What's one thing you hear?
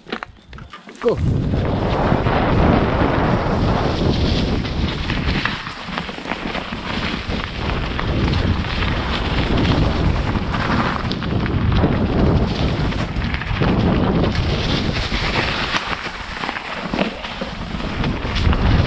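Bicycle tyres roll and crunch over dry leaves and dirt.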